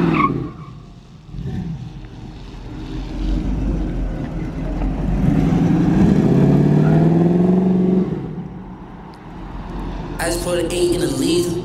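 A car engine revs loudly and rises in pitch.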